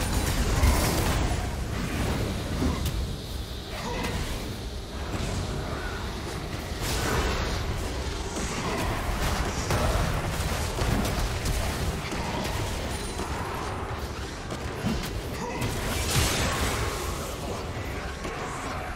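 Spell effects burst and crackle in a video game battle.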